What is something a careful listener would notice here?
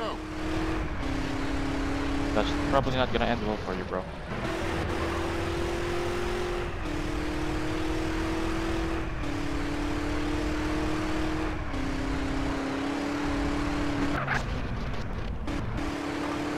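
A car engine hums steadily, its pitch stepping up and down as the gears shift.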